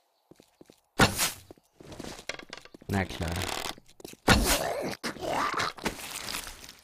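A zombie growls and snarls close by.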